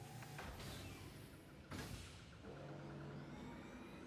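A metal cabinet door swings shut with a clank.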